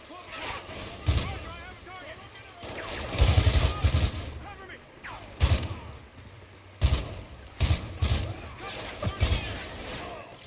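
Gunshots crack in sharp bursts, echoing off nearby walls.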